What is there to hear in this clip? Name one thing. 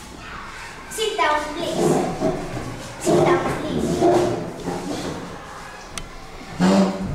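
Young children speak and call out with animation close by.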